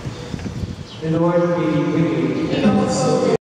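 A man sings through a microphone in a large echoing hall.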